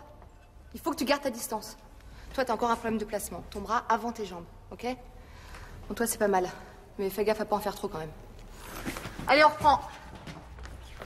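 A young man sings in a bright voice.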